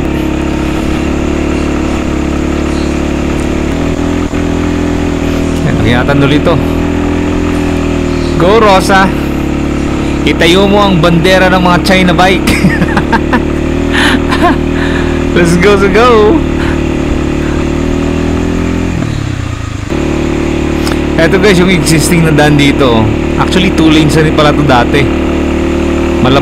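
A motorcycle engine hums steadily close by, easing off briefly before picking up again.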